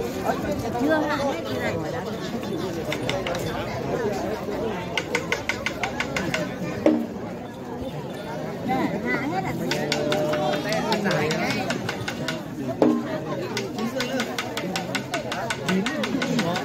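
A large crowd chatters and calls out nearby outdoors.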